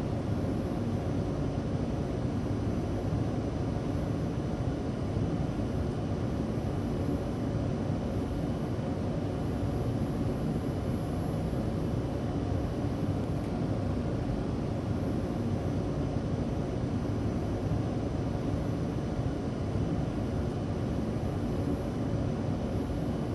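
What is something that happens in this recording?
A train rumbles steadily along its tracks, heard from inside a carriage.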